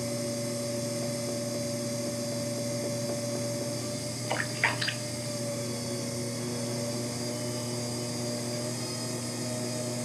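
A potter's wheel motor hums steadily.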